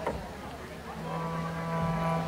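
A button accordion plays a held chord.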